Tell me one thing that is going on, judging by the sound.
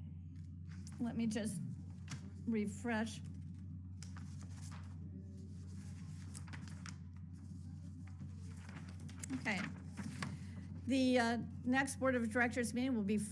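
A middle-aged woman speaks calmly over an online call, with pauses.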